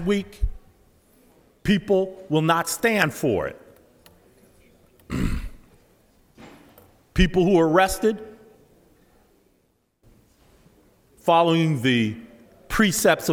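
An elderly man speaks firmly into a microphone, in bursts with pauses.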